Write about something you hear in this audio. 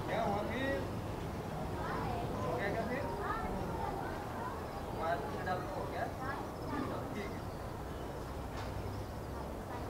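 A flock of birds chirps and twitters overhead.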